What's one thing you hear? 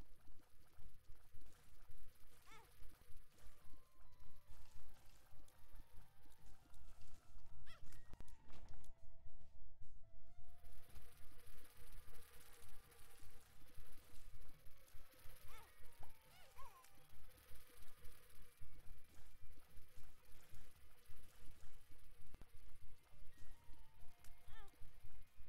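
Video game tears splash with soft wet pops.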